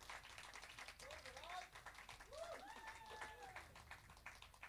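A young woman whoops and cheers.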